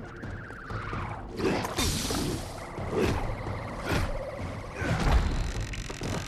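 A heavy weapon swings and strikes with sharp impacts.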